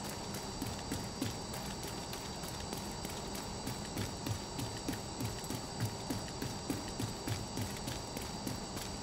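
Heavy footsteps thud quickly on hard ground.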